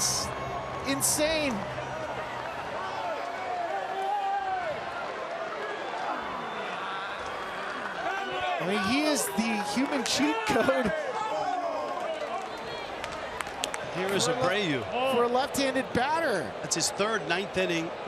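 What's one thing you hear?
A large stadium crowd murmurs and cheers in the background.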